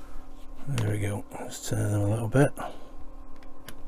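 A small tool scrapes and taps on a thin wooden board.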